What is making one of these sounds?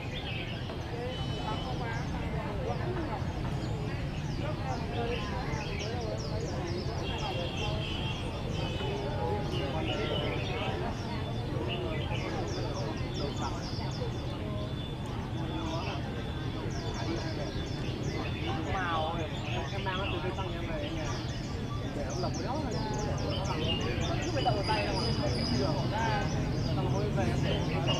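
Men and women chatter nearby in a crowd.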